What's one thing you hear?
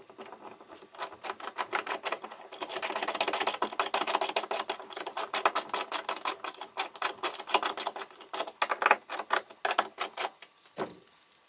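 A ratcheting screwdriver clicks rapidly as a screw is driven in.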